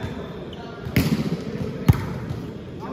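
A volleyball is struck with sharp slaps in a large echoing hall.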